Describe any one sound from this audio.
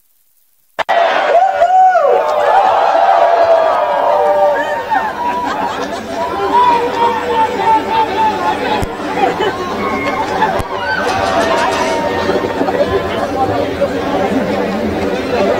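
A large crowd of performers chants and sings together outdoors.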